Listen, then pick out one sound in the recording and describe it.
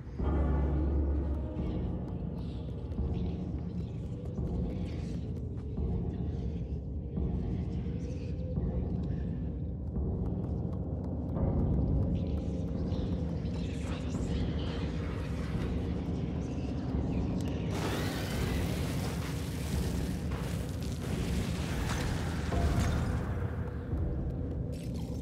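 Small footsteps patter across creaking wooden floorboards.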